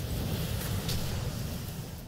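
Flames roar up in a burst.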